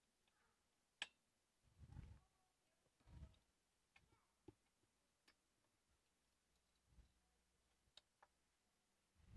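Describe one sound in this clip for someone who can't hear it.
Small hard parts click and tap as they are handled.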